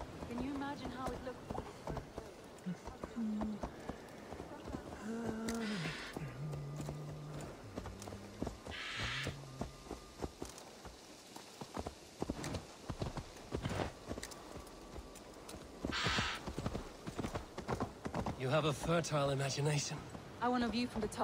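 A horse's hooves clop steadily at a walk.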